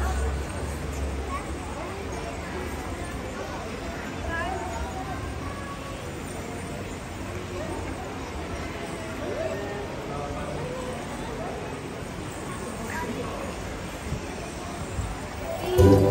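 Upbeat music plays loudly through loudspeakers in a large, echoing hall.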